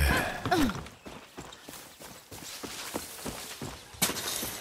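Footsteps crunch over grass and dirt.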